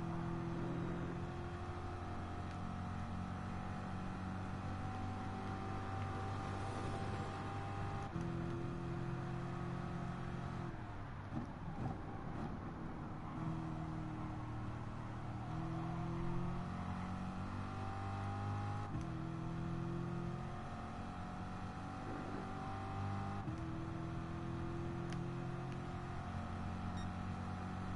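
A racing car engine roars loudly, rising in pitch through the gears and dropping as it slows for a bend.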